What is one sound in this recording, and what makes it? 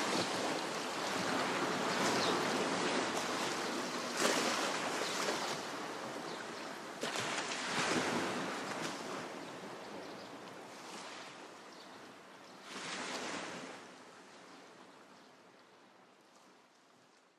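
Gentle sea waves wash onto a beach, swelling and fading.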